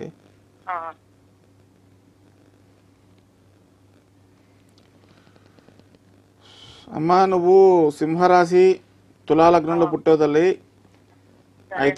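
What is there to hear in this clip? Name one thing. A middle-aged man speaks into a microphone in drawn-out phrases.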